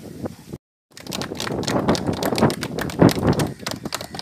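A group of people clap their hands rapidly.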